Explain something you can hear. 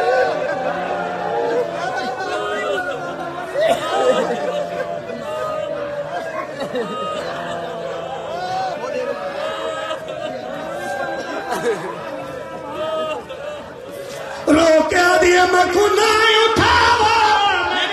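A man chants loudly into a microphone through loudspeakers in a large echoing space.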